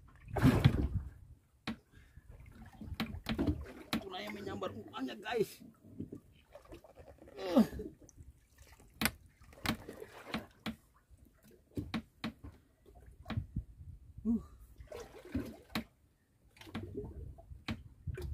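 Water splashes against the side of a small boat.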